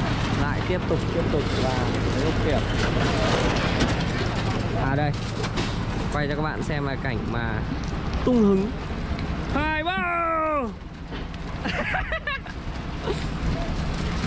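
Men talk and call out to each other outdoors.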